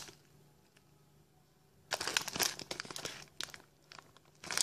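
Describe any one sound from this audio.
A plastic bag crinkles loudly.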